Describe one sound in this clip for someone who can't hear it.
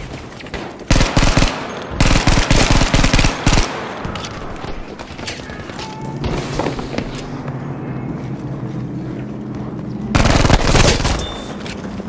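A submachine gun fires loud rapid bursts at close range.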